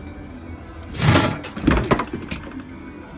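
A cat thumps against a wooden fence.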